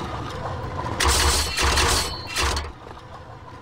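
Metal spikes spring up and clang.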